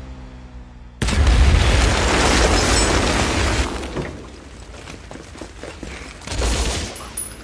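A loud explosion booms and roars with fire.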